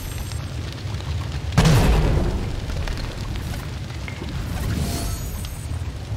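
A whoosh sounds as a small glowing creature dashes through the air.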